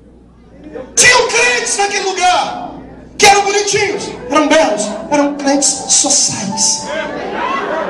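A man speaks with animation through a microphone and loudspeakers in a large echoing hall.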